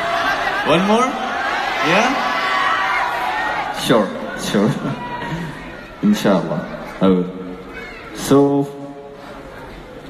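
A young man sings through a loudspeaker in a large echoing hall.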